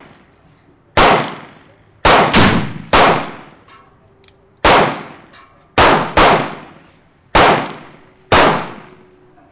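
A revolver fires a series of loud shots outdoors.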